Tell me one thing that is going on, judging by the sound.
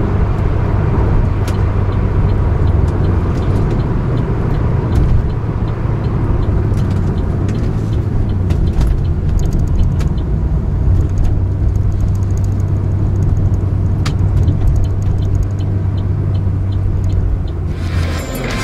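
A car engine hums steadily from inside the cabin.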